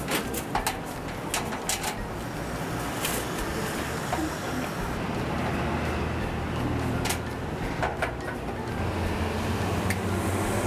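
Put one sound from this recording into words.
Cable connectors click and rattle against a metal frame.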